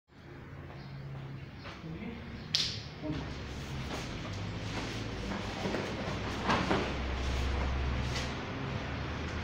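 Bare feet shuffle on a mat.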